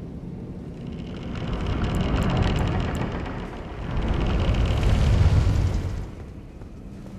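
Heavy wooden doors grind and creak slowly open.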